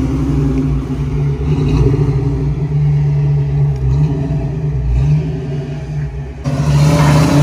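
A car engine rumbles at a low idle as the car rolls slowly.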